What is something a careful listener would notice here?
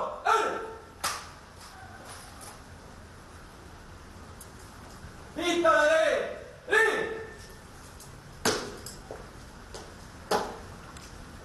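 A guard's boot heels stamp sharply on a hard floor.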